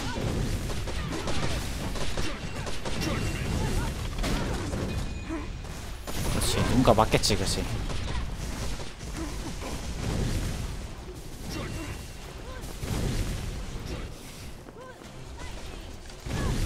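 Game fighting sounds of blasts and hits ring out throughout.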